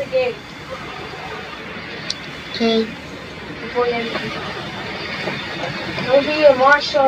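A jet engine hums steadily as an airliner taxis.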